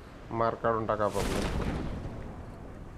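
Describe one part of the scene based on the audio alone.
A parachute opens with a loud whoosh.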